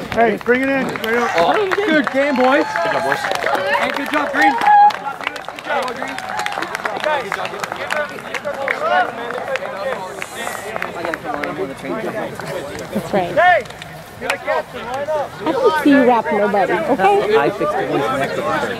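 A crowd of young men chatter and call out close by, outdoors.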